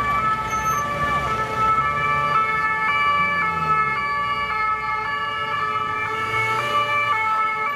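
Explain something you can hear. Police vans drive past with engines rumbling.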